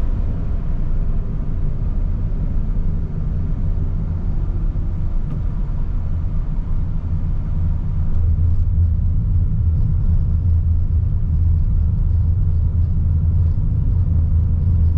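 A car engine hums steadily from inside the cabin.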